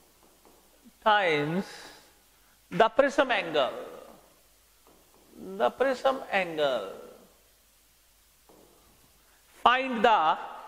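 A middle-aged man speaks calmly and clearly into a clip-on microphone, explaining in short phrases with pauses.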